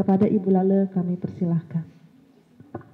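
A woman speaks calmly into a microphone, heard through a loudspeaker.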